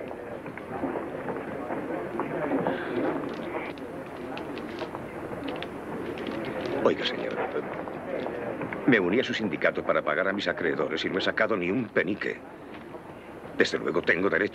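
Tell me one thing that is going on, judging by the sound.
A man speaks quietly and earnestly, close by.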